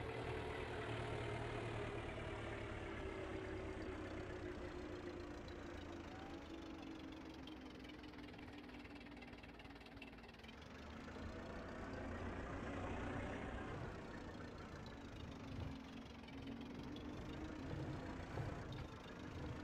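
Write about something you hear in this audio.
A tractor engine hums steadily, its pitch dropping as it slows and rising as it speeds up again.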